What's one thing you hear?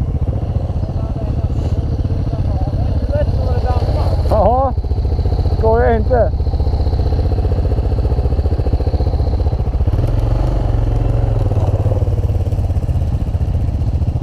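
A motorcycle engine idles close by with a steady throb.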